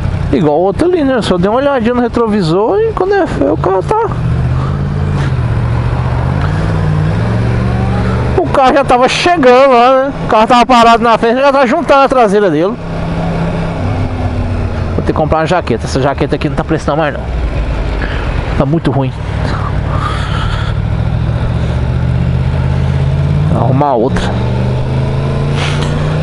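A motorcycle engine hums and revs steadily close by.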